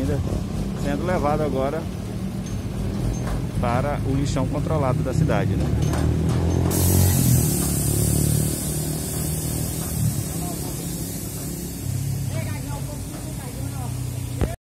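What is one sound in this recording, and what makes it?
A truck engine drones and rumbles steadily.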